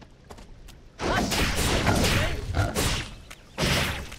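Blasts crackle loudly in a fight.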